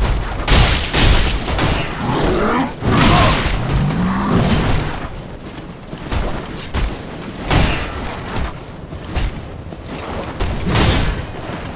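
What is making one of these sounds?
A blizzard wind howls steadily.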